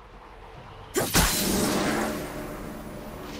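A magic spell bursts with a sharp whoosh.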